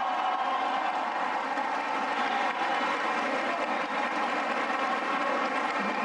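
A crowd applauds steadily in a large room.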